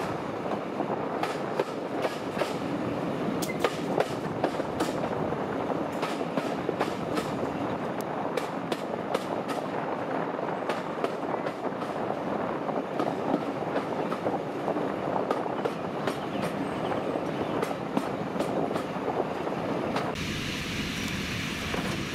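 Train wheels rumble and clatter over rail joints.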